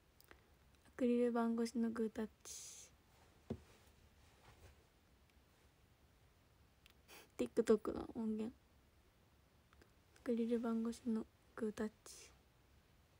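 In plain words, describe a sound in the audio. A young woman speaks softly and closely into a microphone, in short bursts.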